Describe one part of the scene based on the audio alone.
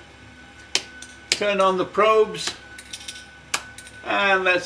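Switches click sharply on a control panel.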